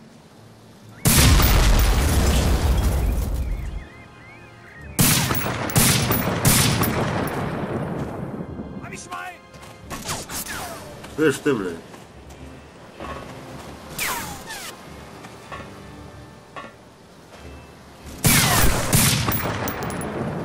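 A rifle fires loud shots that echo away.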